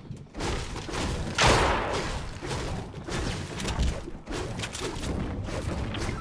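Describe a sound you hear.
A pickaxe strikes wood with a hard knock.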